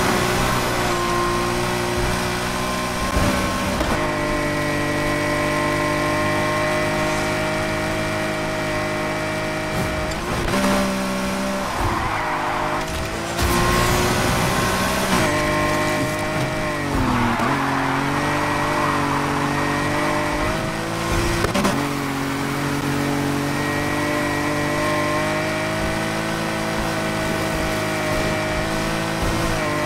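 A car engine roars at high revs, its pitch shifting with gear changes.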